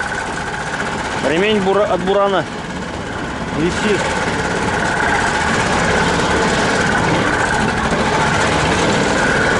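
Bushes and branches brush and scrape against a vehicle.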